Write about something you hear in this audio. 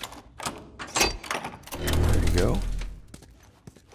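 A heavy metal door creaks and swings open.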